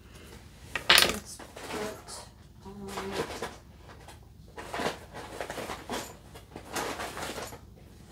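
Fabric rustles as a doll's clothes are handled.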